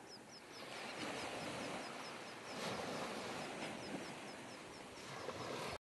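Small waves wash gently over the shore.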